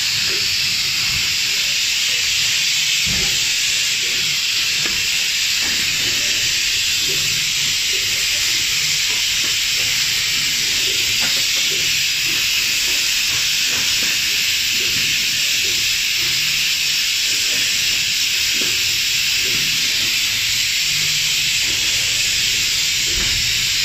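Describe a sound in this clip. A machine runs with a steady loud hiss and whir.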